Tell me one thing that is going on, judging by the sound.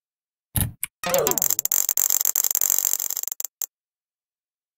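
A loud electronic buzz sounds for a few seconds and then cuts off.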